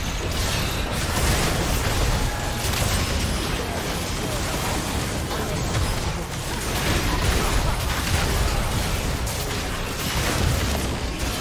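Spell effects crackle and blast in a fast, noisy game fight.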